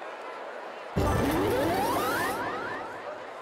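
A bright, rising electronic whoosh sounds.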